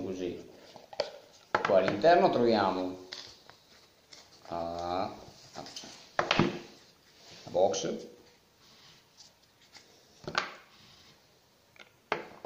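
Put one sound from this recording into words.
Small objects click and tap on a table.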